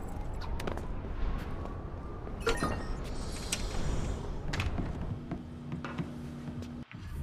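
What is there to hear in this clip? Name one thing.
Footsteps thud quickly across a hard floor and up stairs.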